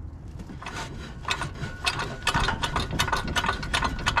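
A ratchet wrench clicks rapidly.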